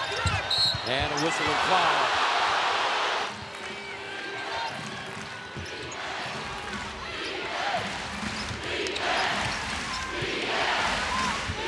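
A large indoor crowd cheers and roars.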